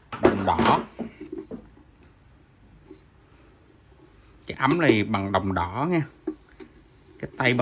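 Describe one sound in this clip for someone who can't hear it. A metal kettle's handle rattles and clinks as the kettle is handled.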